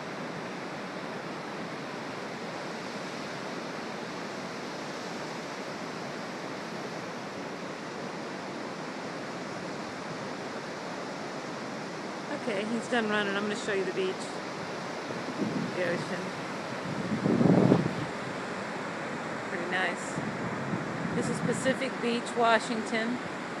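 Ocean surf rolls and breaks on a flat beach.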